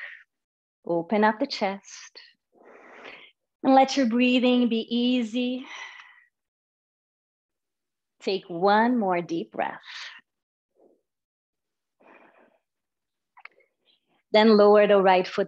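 A woman speaks calmly and guides slowly through a microphone, heard as if over an online call.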